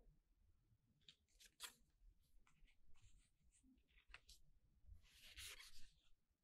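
Stiff cards and plastic sleeves rustle and tap as hands handle them.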